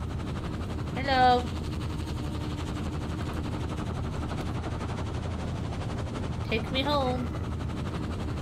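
A young woman exclaims briefly into a microphone.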